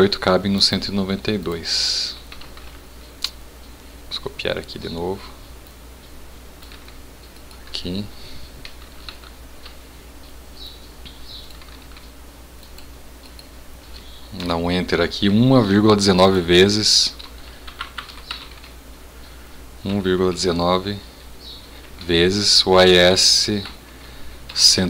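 A man talks calmly into a webcam microphone.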